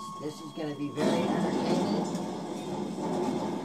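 A fiery explosion roars through a television loudspeaker.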